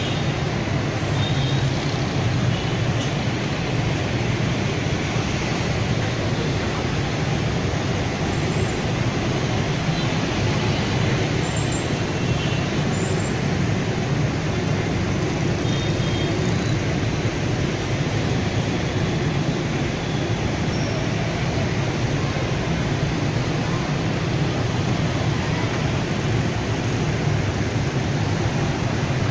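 Heavy traffic of motorbikes and cars rumbles steadily along a busy road.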